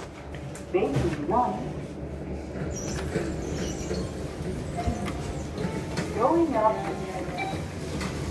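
A finger taps elevator buttons with soft clicks.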